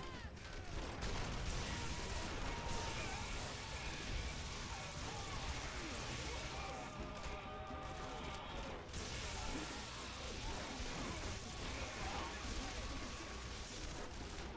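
Electric bolts crackle and zap in bursts.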